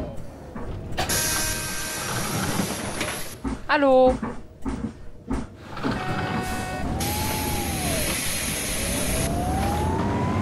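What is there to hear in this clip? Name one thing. Bus doors open and close with a hiss of air.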